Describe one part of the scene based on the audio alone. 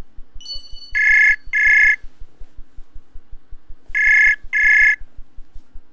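A call tone rings in short repeated pairs of beeps.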